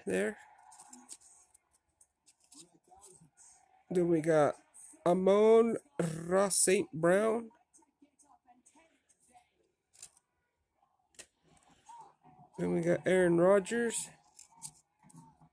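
Trading cards rustle and slide against each other in a pair of hands.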